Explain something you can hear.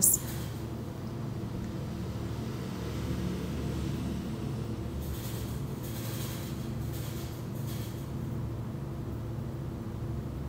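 A small metal tool scrapes lightly against a hard surface.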